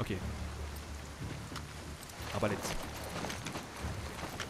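Footsteps splash slowly through shallow water.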